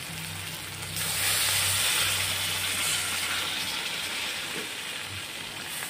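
Water pours into a hot pan with a rushing hiss.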